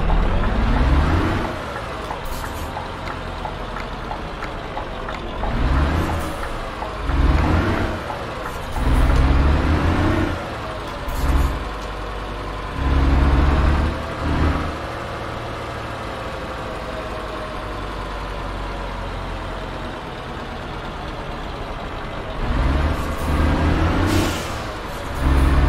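A truck engine rises and falls in pitch.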